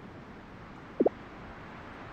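A short soft chime sounds once.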